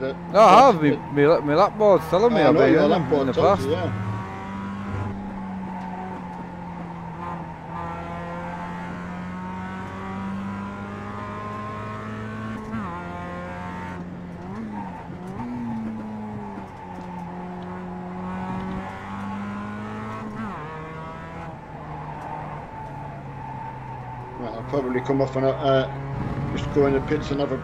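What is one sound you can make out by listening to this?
A racing car engine drones steadily, shifting pitch as it changes gear.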